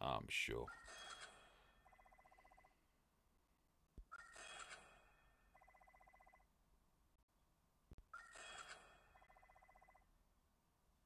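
A bright electronic chime rings out as an upgrade completes.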